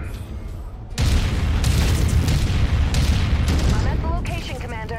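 Heavy guns fire and explosions rumble in a steady roar.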